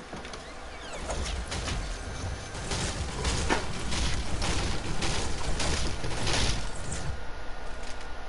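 A pickaxe swooshes and thuds repeatedly.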